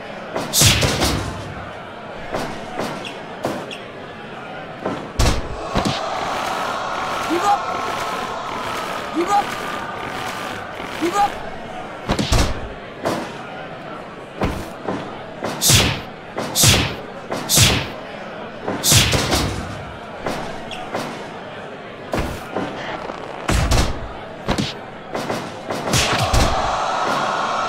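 Heavy thuds of blows and bodies hitting a ring mat land now and then.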